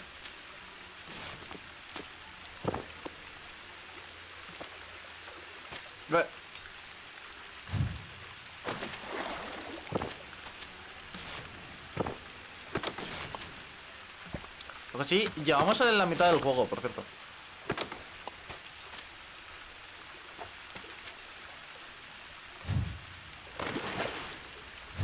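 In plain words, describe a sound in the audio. A young man talks into a close microphone, in short bursts.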